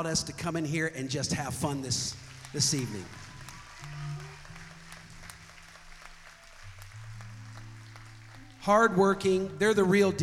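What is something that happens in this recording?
A man sings with feeling through a microphone and loudspeakers.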